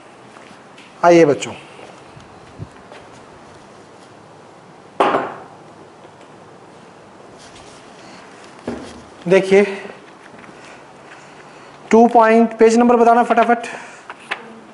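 A young man speaks in short bursts through a microphone.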